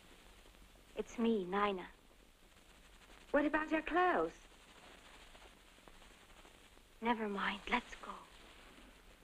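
A young woman speaks urgently nearby.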